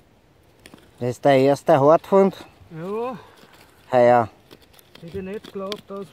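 A small trowel scrapes in dry soil.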